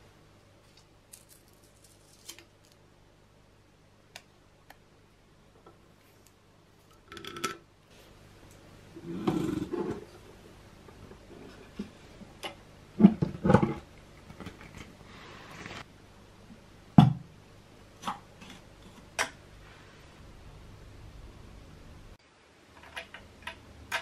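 Small metal parts click and clatter under fingers.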